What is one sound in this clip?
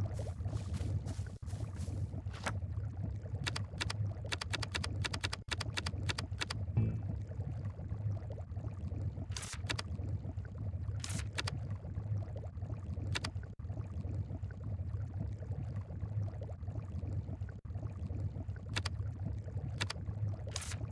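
Soft game menu clicks tick in quick bursts.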